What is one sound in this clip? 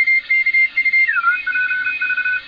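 A radio tone slides in pitch as a dial is tuned.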